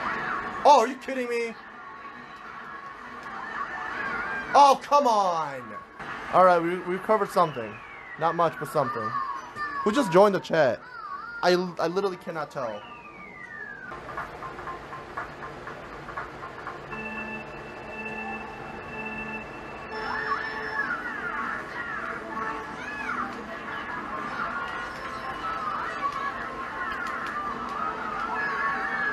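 Video game motorbike engines hum from a television.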